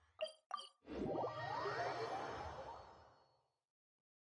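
A game teleport whooshes and shimmers.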